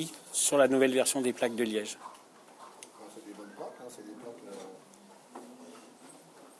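A man speaks close by in a casual, lively voice.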